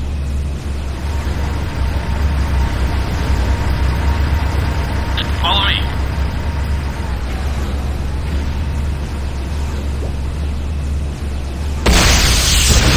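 An electric weapon crackles and buzzes.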